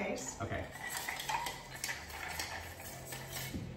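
Ice rattles in a metal cocktail shaker.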